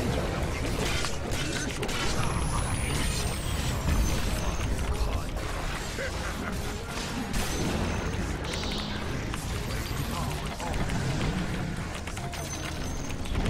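Game spells and attacks burst and crackle.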